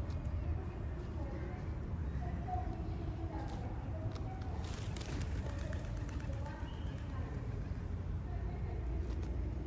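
A plastic bag rustles and crinkles as a crow pecks and tugs at it.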